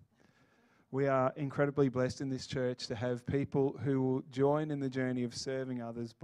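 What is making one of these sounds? A man sings loudly through a microphone in a large hall.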